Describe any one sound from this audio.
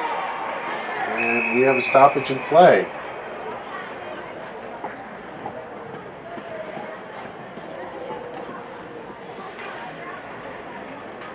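A crowd cheers and murmurs in a large echoing rink.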